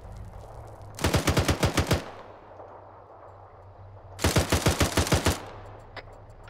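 A machine gun fires rapid bursts nearby.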